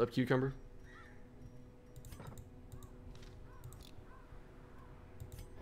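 Soft chiming game menu sounds ring out repeatedly.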